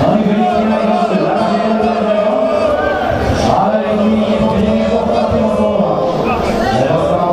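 A crowd of fans chants loudly in unison in a large echoing hall.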